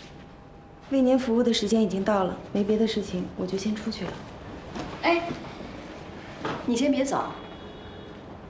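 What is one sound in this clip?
A young woman speaks calmly and politely close by.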